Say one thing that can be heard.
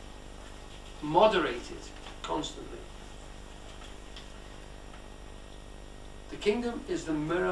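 An older man speaks calmly and thoughtfully, in short phrases with long pauses.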